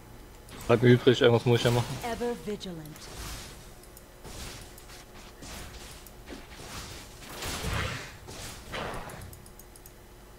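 Magic spell effects whoosh and crackle during a fight in a video game.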